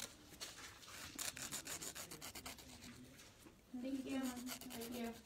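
A nail file scrapes quickly back and forth across fingernails.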